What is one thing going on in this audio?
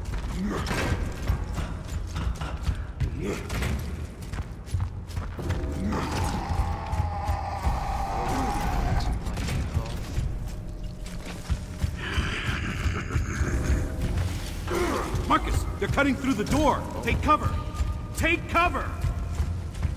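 Heavy armoured footsteps thud on stone.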